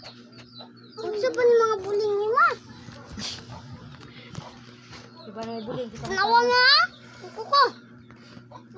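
A little girl squeals and shouts loudly close by.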